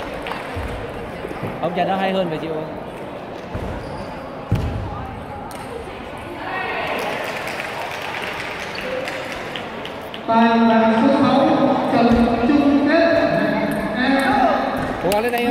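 A table tennis ball clicks against paddles and the table in a large echoing hall.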